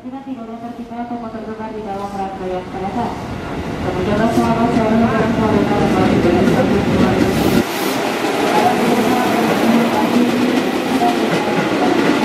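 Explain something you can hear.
Train wheels rumble and clatter on the rails, growing louder.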